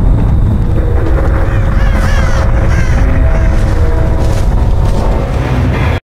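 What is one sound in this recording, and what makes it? Dry cornstalks rustle as someone pushes through them.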